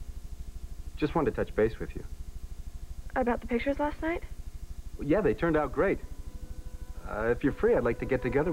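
A man speaks calmly on a telephone.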